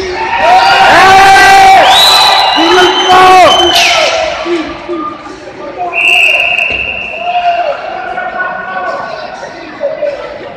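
A crowd of young fans sings and chants loudly in a large echoing arena.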